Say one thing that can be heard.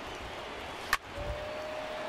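A wooden baseball bat cracks sharply against a ball.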